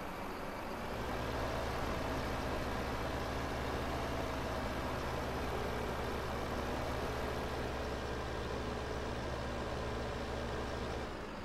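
A heavy diesel engine hums steadily at low pitch.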